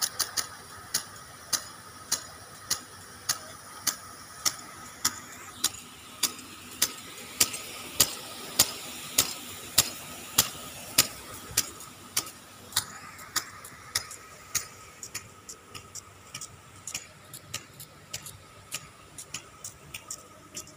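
Lawn sprinklers tick in a steady, rapid rhythm.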